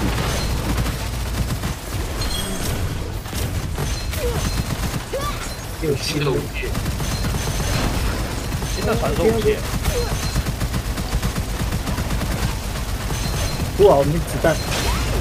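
Explosions boom in a game.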